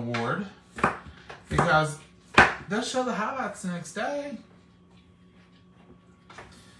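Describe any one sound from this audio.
A knife chops onion on a wooden board with sharp knocks.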